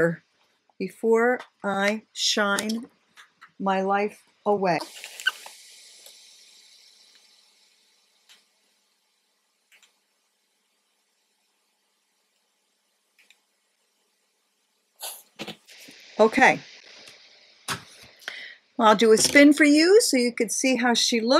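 A middle-aged woman speaks calmly and close to a microphone.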